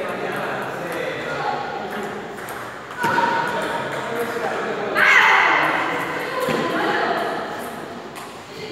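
A man talks in a large echoing hall.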